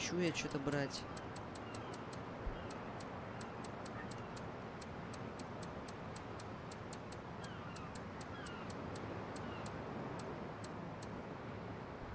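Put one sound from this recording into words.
Short electronic menu clicks tick in quick, regular succession.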